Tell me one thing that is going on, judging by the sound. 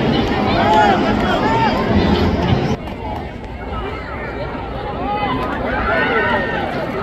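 A large crowd chatters and cheers in an open stadium.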